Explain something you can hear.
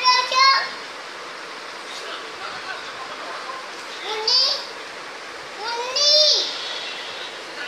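A small child squeals and shouts in high bursts close by.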